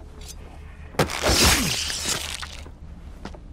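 A man cries out loudly during a struggle.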